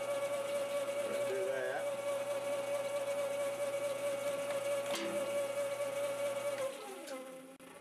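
A lathe motor hums steadily, then stops.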